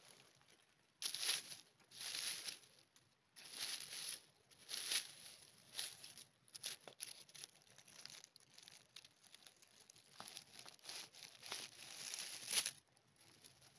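A knife scrapes through leaf litter around a mushroom.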